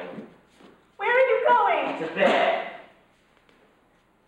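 A young woman speaks in a tearful, upset voice.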